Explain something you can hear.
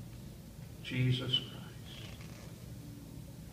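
An elderly man speaks with animation in a large echoing hall.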